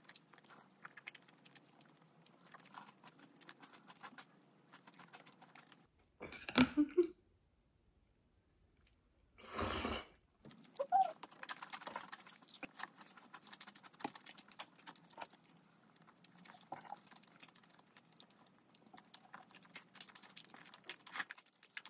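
A young woman slurps noodles close to the microphone.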